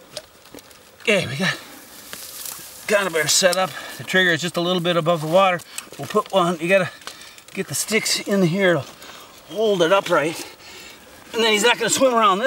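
A man speaks calmly and closely, as if into a microphone.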